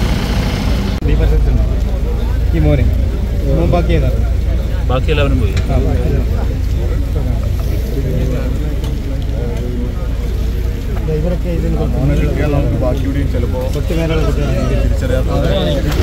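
Men talk nearby in low voices.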